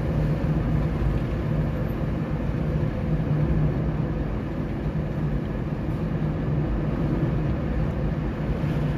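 Tyres roll on smooth asphalt.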